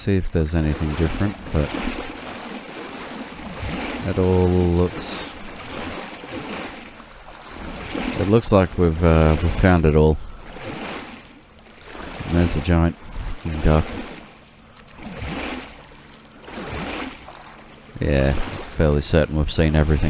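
Water sloshes and splashes with each wading step, echoing off hard walls.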